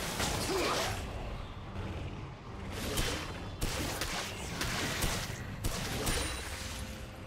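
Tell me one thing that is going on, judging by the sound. Magic blasts whoosh and crackle in a fight.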